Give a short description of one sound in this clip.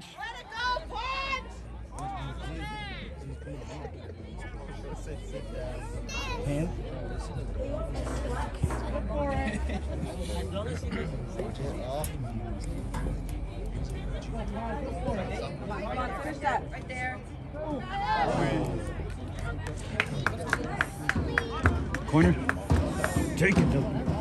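Spectators nearby shout and cheer outdoors.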